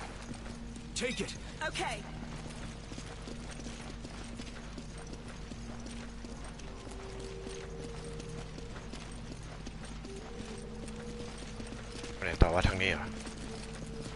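A young man speaks briefly into a headset microphone.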